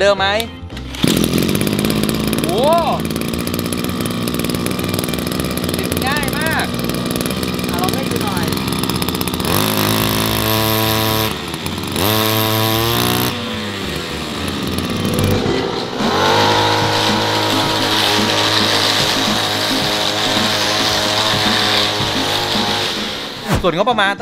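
A small petrol engine runs close by, revving up and down loudly.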